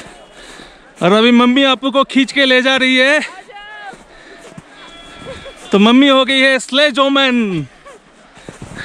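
A child squeals and shouts loudly with excitement.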